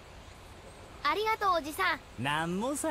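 A boy speaks briefly.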